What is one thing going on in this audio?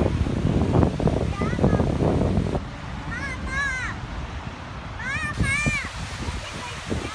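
Waves splash onto a pebbly shore.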